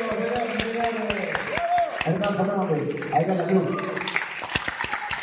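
A man sings into a microphone on an amplified stage.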